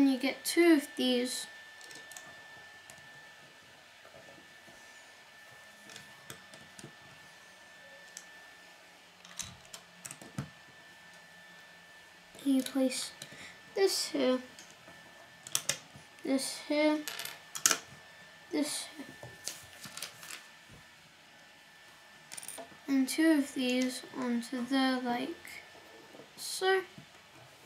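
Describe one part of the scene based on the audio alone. Plastic toy bricks click and snap together.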